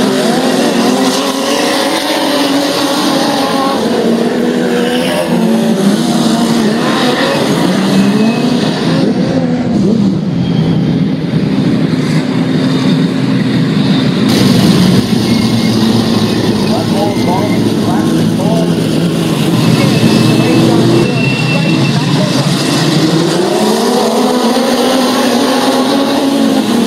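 Racing car engines roar and rev loudly, rising and falling in pitch.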